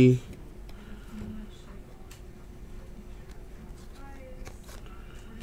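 Trading cards rustle and slide against each other as they are shuffled.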